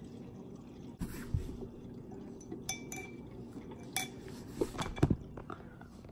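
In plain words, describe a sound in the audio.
A metal straw clinks against a glass bottle.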